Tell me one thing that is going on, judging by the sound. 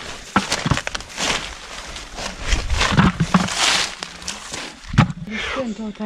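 Leaves and dry litter rustle.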